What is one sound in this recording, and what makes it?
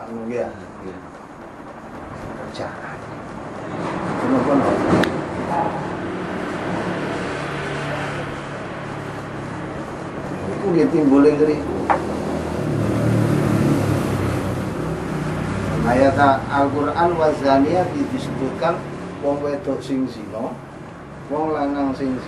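A middle-aged man speaks through a microphone.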